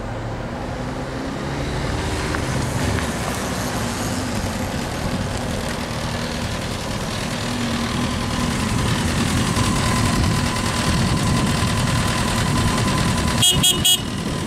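An inline-four sport bike rides slowly in low gear.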